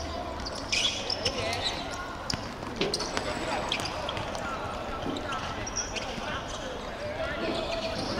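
Sneakers squeak on the hard court.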